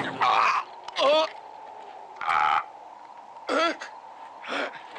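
A man shouts loudly outdoors.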